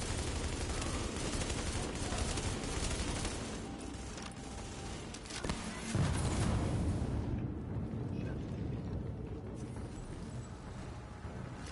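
Rapid gunfire crackles and booms in a large echoing hall.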